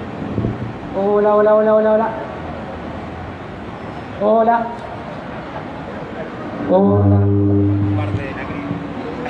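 A man shouts slogans through a loudspeaker outdoors.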